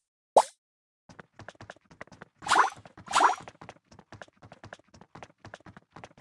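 Quick soft pops and clicks patter as game figures gather.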